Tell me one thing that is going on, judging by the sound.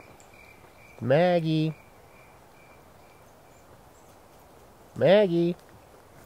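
A man close by calls out in a drawn-out, sing-song voice.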